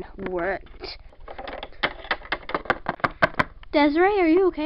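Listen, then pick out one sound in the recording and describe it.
A small plastic toy taps and clatters on a hard surface.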